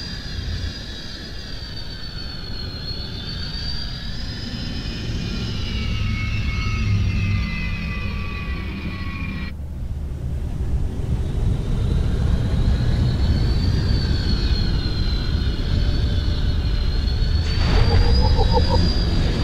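A vehicle hums and whooshes steadily as it speeds along a track.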